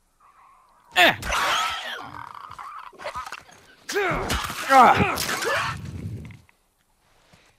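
Heavy blows land in a violent scuffle.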